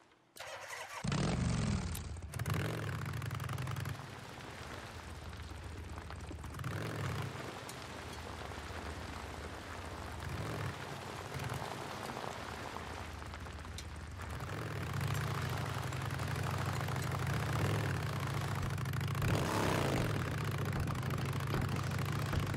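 A motorcycle engine starts and rumbles steadily, revving up at times.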